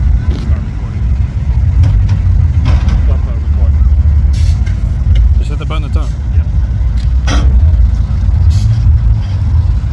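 Truck engines rumble as a parade of vehicles drives slowly along a street.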